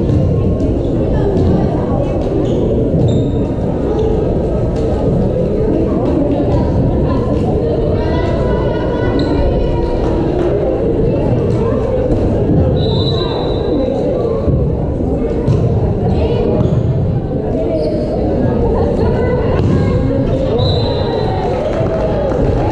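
A volleyball thuds when hit.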